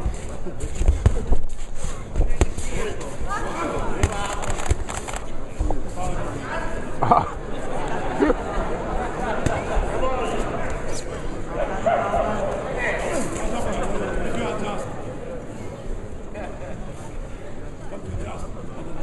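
A crowd murmurs and shouts in a large hall.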